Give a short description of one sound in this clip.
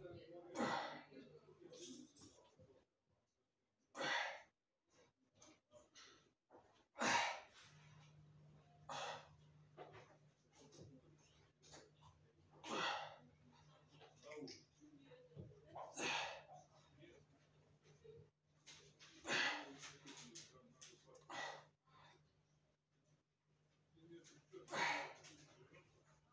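A man breathes out hard with each leg raise.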